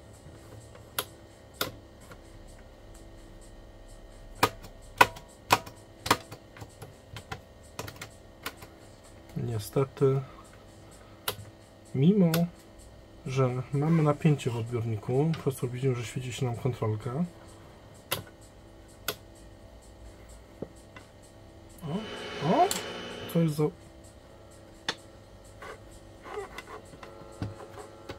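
Hard plastic clicks and knocks as a radio's front panel is handled.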